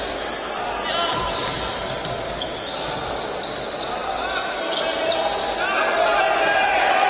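A small crowd murmurs in the background.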